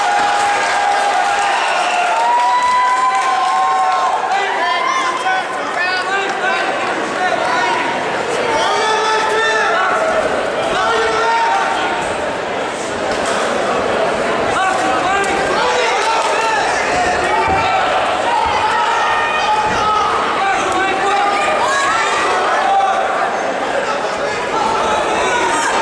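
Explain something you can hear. A crowd cheers and shouts loudly.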